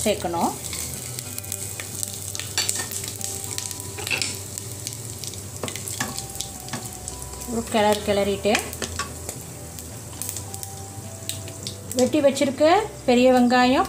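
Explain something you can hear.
Spices sizzle and crackle softly in hot oil.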